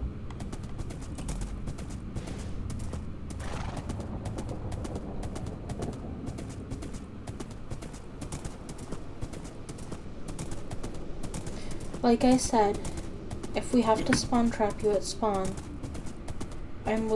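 Hooves gallop in quick, steady clip-clops.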